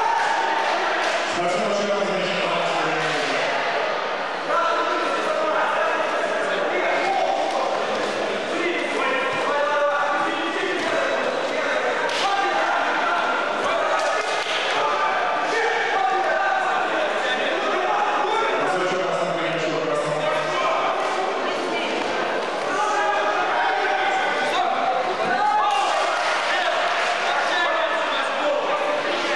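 A crowd of men and women talks and shouts in a large echoing hall.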